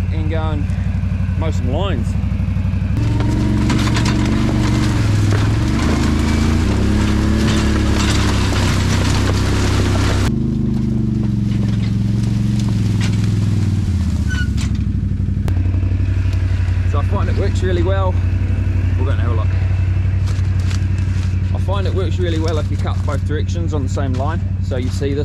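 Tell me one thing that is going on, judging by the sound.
An all-terrain vehicle engine rumbles nearby.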